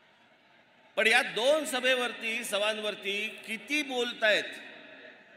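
A man speaks forcefully into a microphone over loudspeakers, echoing outdoors.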